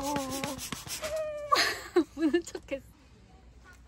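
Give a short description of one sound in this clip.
A young woman talks and laughs brightly.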